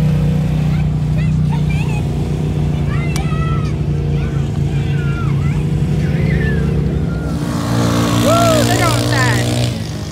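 A utility vehicle's engine rumbles steadily nearby as it drives slowly.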